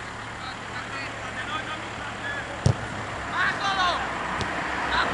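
Young men shout to each other in the distance across an open field.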